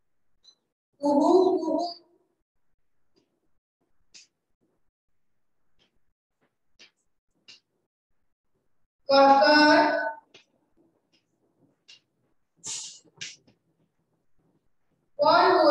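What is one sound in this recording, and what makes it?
A young woman speaks clearly, as if teaching a class.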